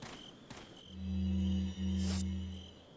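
A low electronic tone hums as a game menu opens.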